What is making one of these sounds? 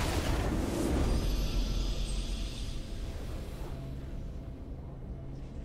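A triumphant fanfare swells and then fades.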